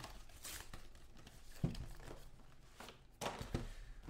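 Cardboard scrapes and rustles as a box is torn open.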